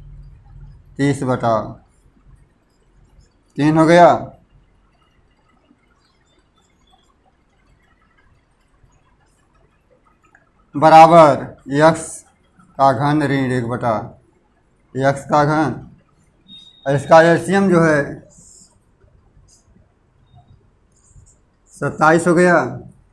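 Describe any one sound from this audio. An elderly man speaks calmly in short bursts, close by.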